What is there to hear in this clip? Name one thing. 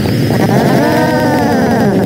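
A fireball bursts with a roaring whoosh.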